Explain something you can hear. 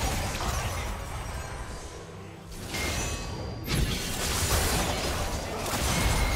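Game sound effects of spells and combat play.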